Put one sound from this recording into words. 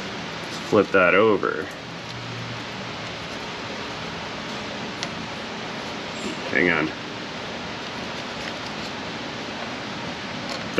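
Small metal parts click and scrape.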